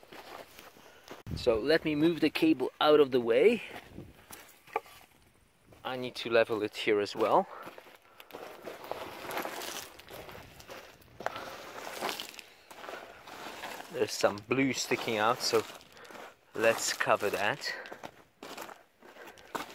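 Gravel crunches underfoot.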